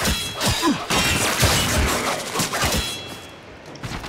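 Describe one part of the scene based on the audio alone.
Blades clash and whoosh in rapid melee strikes.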